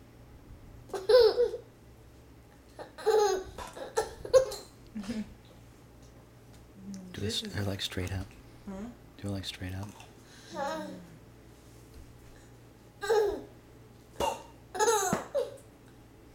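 A baby squeals and laughs close by.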